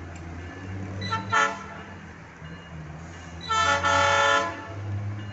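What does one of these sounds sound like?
A train horn blows twice in the distance.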